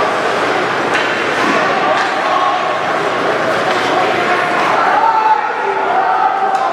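A crowd murmurs and cheers in a large echoing arena.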